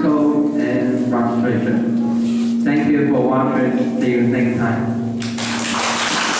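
A young man speaks calmly through a microphone.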